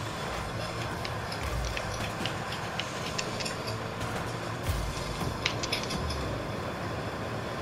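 A video game car engine roars steadily.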